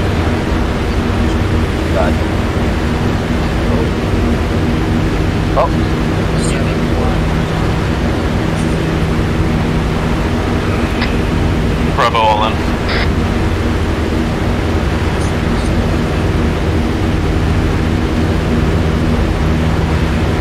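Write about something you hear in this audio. An aircraft engine drones steadily and loudly inside the cabin.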